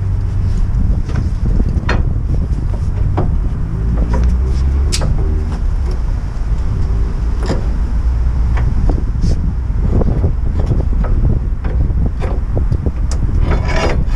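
A long metal bar clanks and knocks against a car's suspension.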